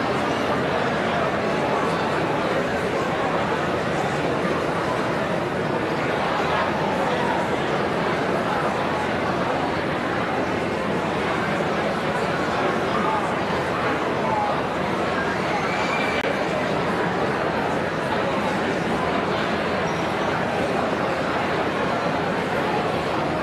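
A large crowd chatters and murmurs in a big echoing hall.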